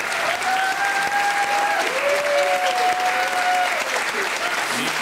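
A group of people sing together.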